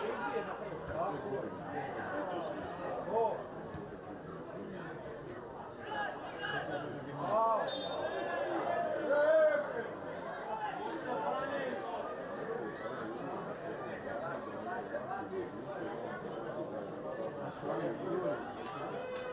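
A crowd shouts and chants in an open stadium.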